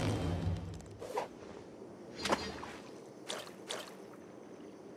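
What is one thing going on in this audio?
Small splashes and plops come from the water.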